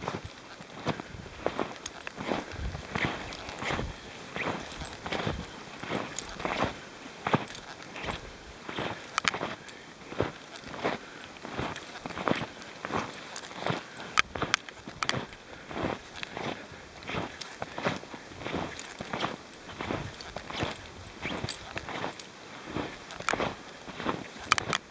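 Dogs' paws crunch through deep snow in a steady rhythm.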